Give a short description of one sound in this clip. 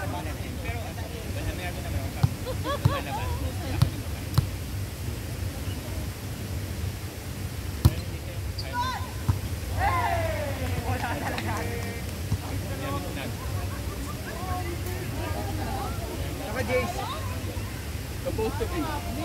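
Young people call out and shout to each other outdoors.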